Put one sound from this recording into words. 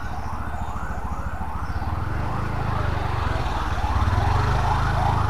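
A motorbike engine putters close by and grows louder.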